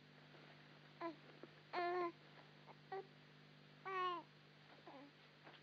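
A baby whimpers and cries softly.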